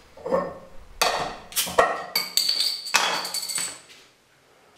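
A bottle cap pops off a glass bottle.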